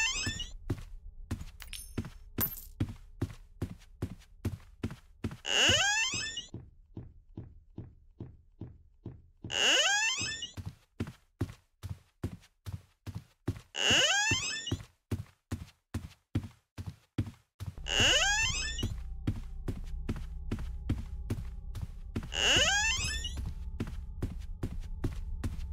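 Quick footsteps tap steadily on a hard floor.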